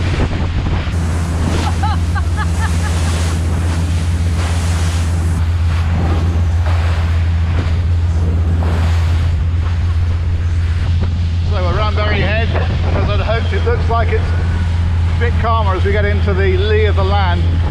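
Wind buffets a microphone.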